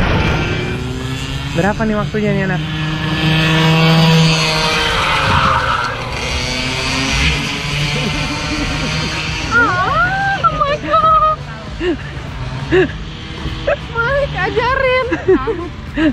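Young women chat and laugh nearby.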